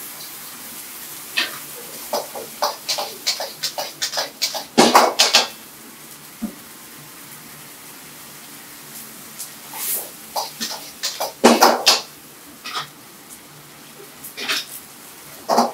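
Food sizzles and hisses in a hot wok.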